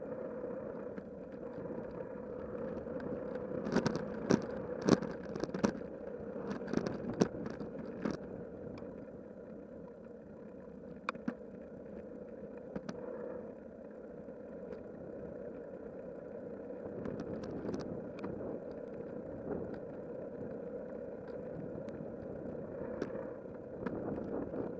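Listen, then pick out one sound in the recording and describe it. Tyres of a bicycle hum steadily on a paved path.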